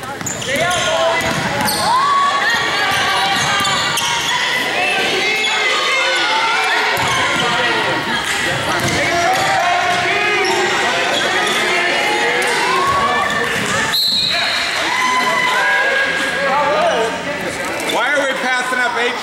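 A crowd of spectators talks and cheers loudly in an echoing gym.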